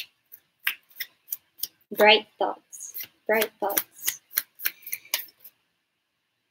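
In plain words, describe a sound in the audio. Playing cards flick and shuffle in a woman's hands.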